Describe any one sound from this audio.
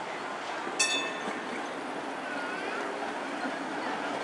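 A streetcar rolls past on its rails.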